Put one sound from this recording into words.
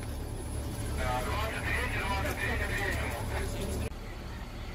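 Adult men talk briefly nearby.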